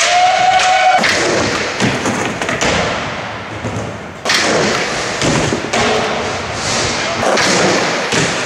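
Skateboard wheels roll over a concrete floor in a large echoing hall.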